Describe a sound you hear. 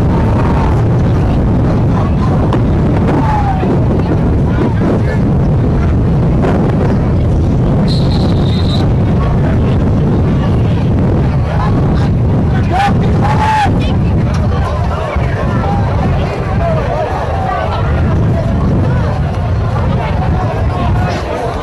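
A group of teenage boys shout and cheer together outdoors.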